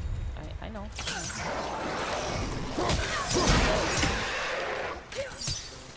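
Heavy blows land in a close fight.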